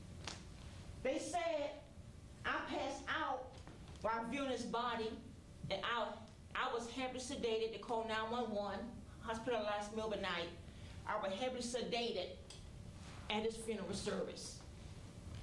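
A man speaks clearly on a stage, his voice ringing in a hall.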